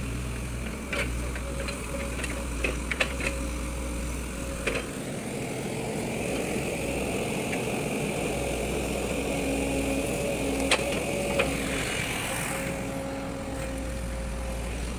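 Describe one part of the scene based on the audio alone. A diesel excavator engine runs close by.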